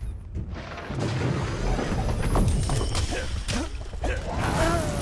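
Armoured warriors clash in a fight, with sharp metallic blows.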